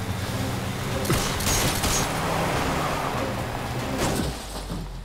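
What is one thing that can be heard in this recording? A car engine roars at speed.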